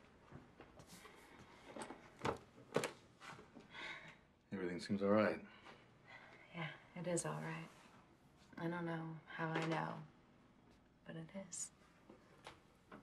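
A young woman speaks softly and warmly up close.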